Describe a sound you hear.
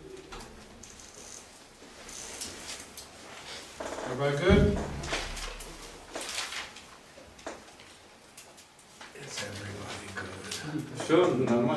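A man speaks with animation to a small room, heard from a short distance.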